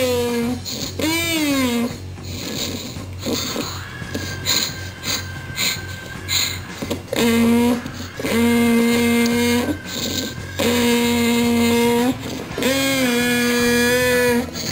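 A toddler sings long, wavering notes into a toy microphone, heard through a small loudspeaker.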